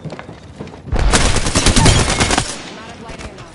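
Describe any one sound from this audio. Gunfire rattles in a quick burst.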